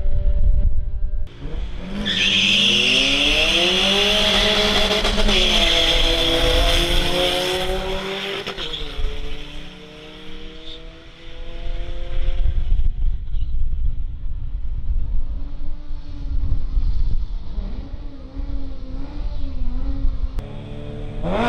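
Car engines roar loudly as two cars accelerate hard down a track.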